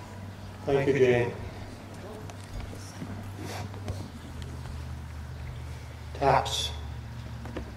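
A man speaks briefly into a microphone, heard through a loudspeaker outdoors.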